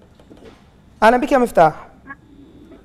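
A man speaks briefly into a microphone in a calm voice.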